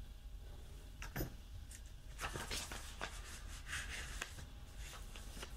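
Paper rustles and crinkles as a sticker sheet is handled.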